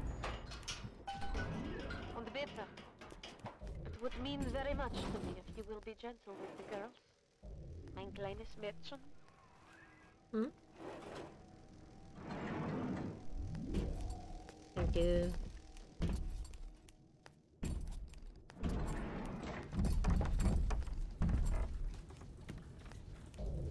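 A young woman talks through a microphone.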